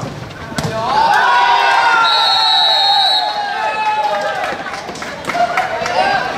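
Young men shout and cheer in celebration outdoors.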